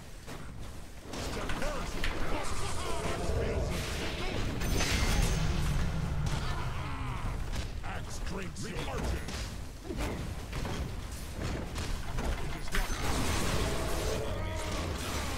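Game battle sounds of blasts and spell effects clash and burst.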